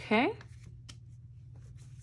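A paper sticker is pressed and rubbed flat onto a hard surface.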